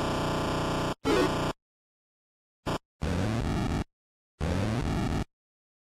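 Chiptune video game music plays in short bursts.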